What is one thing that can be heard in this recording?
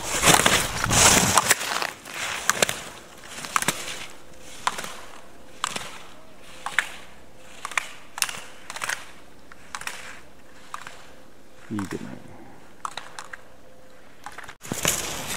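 Skis scrape and hiss over hard snow in quick rhythmic turns.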